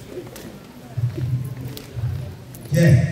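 A man speaks into a microphone over loudspeakers.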